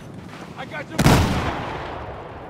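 An explosion bursts nearby.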